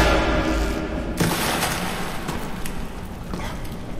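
Quick footsteps patter as a figure runs and jumps.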